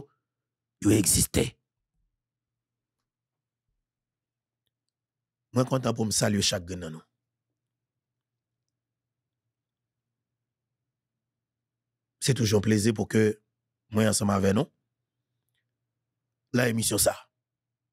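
A man speaks into a close microphone in short, emphatic bursts with long pauses.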